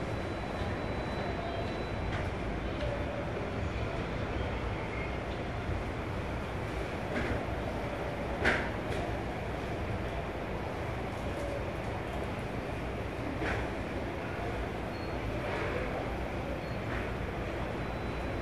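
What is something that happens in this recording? A rope-driven elevator car hums and rumbles as it travels.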